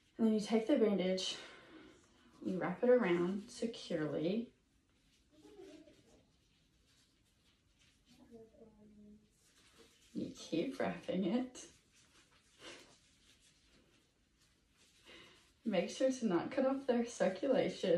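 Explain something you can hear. Tape crinkles as it is wrapped around an arm.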